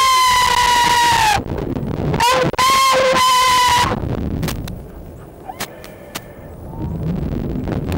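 A young man laughs and shouts close by.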